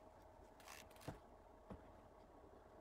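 A rifle knocks softly as it is set down on a mat.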